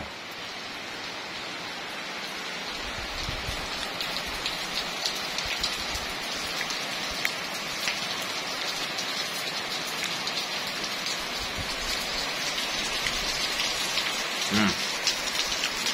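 Heavy rain pours steadily outdoors, pattering on the ground and plants.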